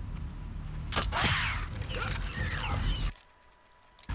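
A monster snarls and growls nearby.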